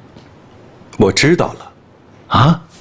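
Another man answers in a low, tense voice nearby.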